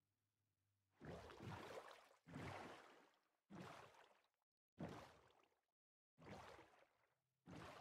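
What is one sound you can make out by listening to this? Oars splash and churn through water in repeated bursts.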